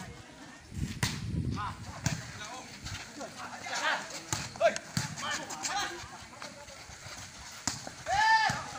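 A ball is struck with sharp thumps.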